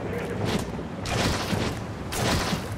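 Liquid paint splashes and splatters in a wet burst.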